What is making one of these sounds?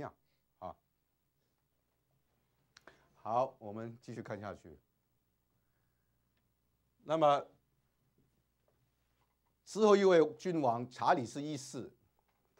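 A middle-aged man speaks calmly in short bursts, close by in a quiet room.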